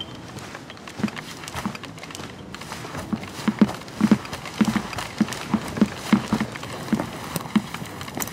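Soft footsteps pad along a wooden floor.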